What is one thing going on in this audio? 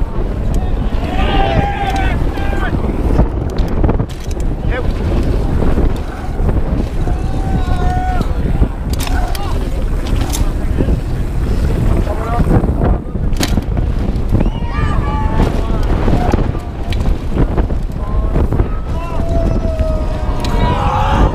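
Spectators shout and cheer nearby as a rider passes.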